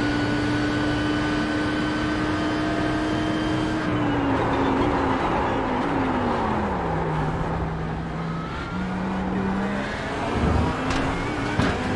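A racing car engine roars at high revs, then drops in pitch as the driver brakes and shifts down.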